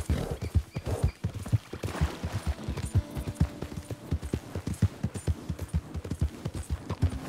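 A horse's hooves thud rapidly on grass as it gallops.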